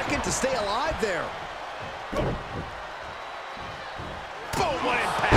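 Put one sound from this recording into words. Blows thud heavily in a wrestling ring.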